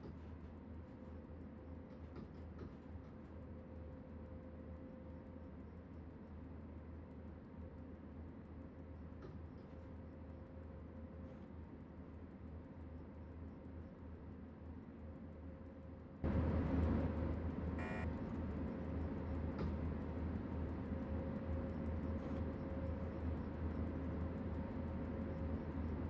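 A train rumbles steadily along the rails with a low electric hum, growing suddenly louder partway through.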